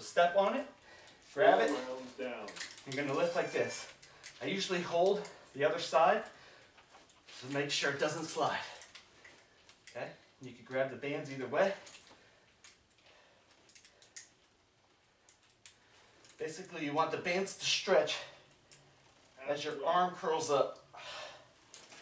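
A man speaks calmly and clearly into a close microphone, pausing between phrases.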